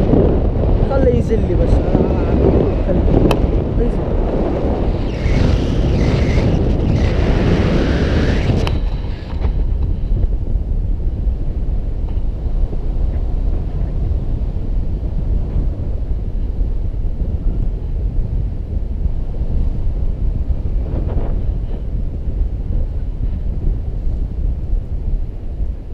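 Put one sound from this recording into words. Strong wind roars steadily past the microphone.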